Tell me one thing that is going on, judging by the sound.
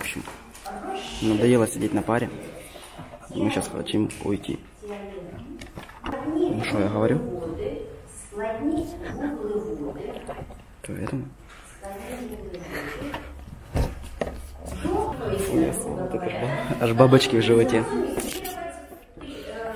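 A young man talks close up, casually.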